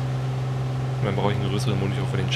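A man speaks into a microphone close by.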